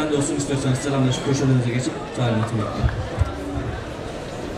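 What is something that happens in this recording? A man speaks loudly into a microphone over loudspeakers.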